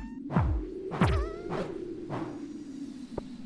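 A pickaxe strikes rock with heavy thuds.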